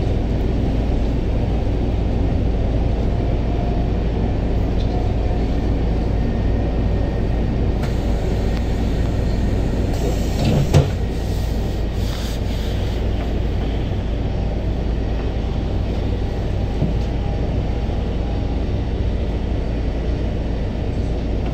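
A steady low rumble of city traffic fills the air outdoors.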